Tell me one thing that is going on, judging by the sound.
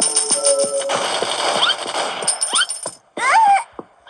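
Rapid gunfire blasts from a game on a small tablet speaker.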